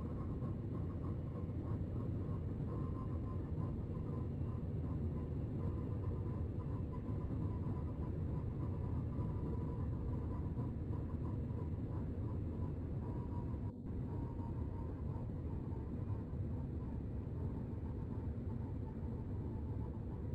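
A train rumbles steadily as it runs through a tunnel.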